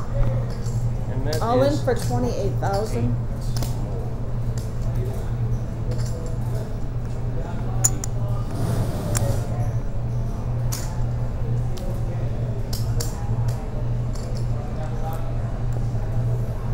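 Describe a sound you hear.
Poker chips click together on a table.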